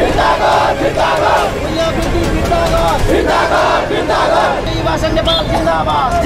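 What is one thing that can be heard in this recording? A man shouts slogans loudly.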